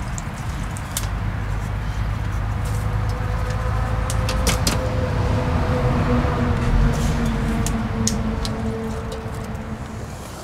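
A gas stove burner roars steadily.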